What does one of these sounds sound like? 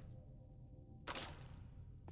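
A lock snaps open with a sharp click.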